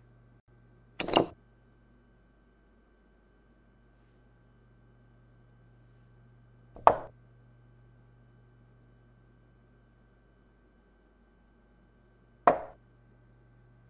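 A chess piece clacks down onto a board several times.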